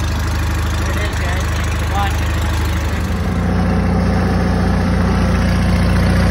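A lawn tractor engine idles with a steady, throbbing rumble close by.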